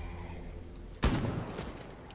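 A single gunshot fires close by.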